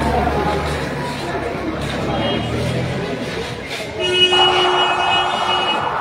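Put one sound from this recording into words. A crowd of men shouts and chatters nearby.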